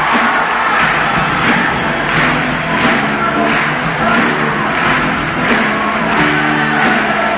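An electric guitar plays a rock tune.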